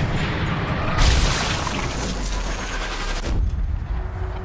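A rifle shot hits a body with a heavy, crunching thud.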